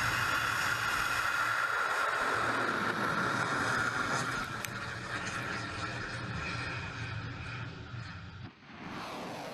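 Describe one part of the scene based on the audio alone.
A rocket engine roars loudly during liftoff.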